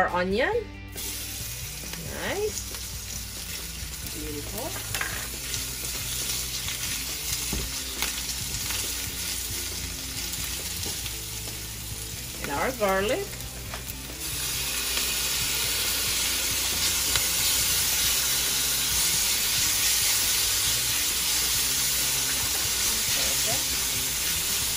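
Onions sizzle in hot oil in a pan.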